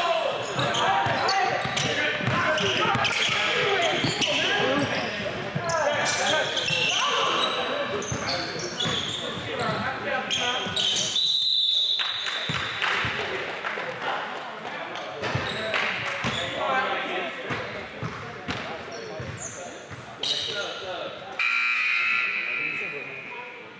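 Young men call out to each other across an echoing gym.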